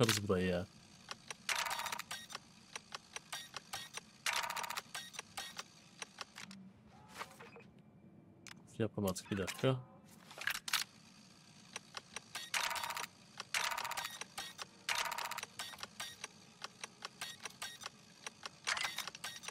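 A lock mechanism clicks and rattles as it is picked.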